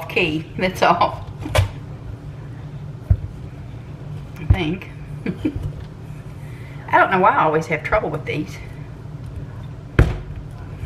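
A knife knocks and cuts into a pumpkin's hard shell.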